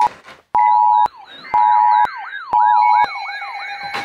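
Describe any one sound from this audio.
A radio plays a warbling siren alarm.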